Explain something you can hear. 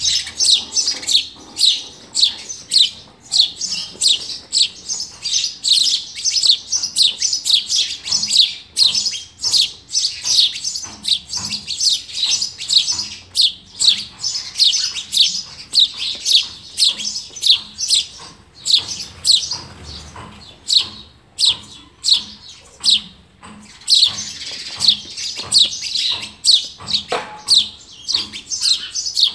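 Young birds in a nest chirp rapidly and shrilly, close by.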